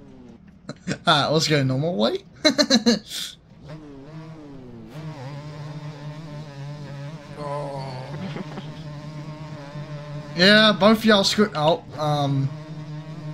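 A dirt bike engine revs and drones steadily, rising and falling in pitch.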